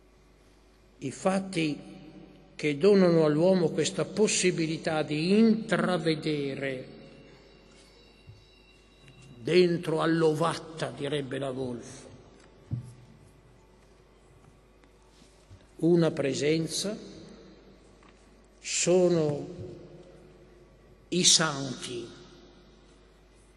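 An elderly man speaks slowly into a microphone, in pauses, in a room with some echo.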